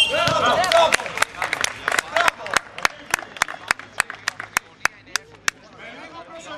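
A basketball bounces on a hard court in quick rhythm.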